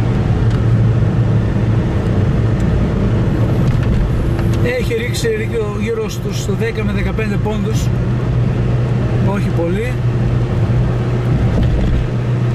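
A car engine hums while driving along.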